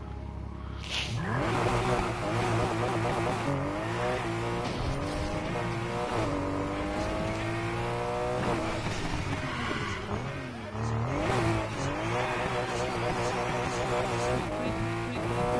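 A car engine revs hard, its roar rising and falling.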